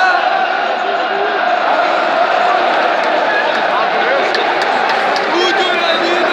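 Men close by shout and cheer in the crowd.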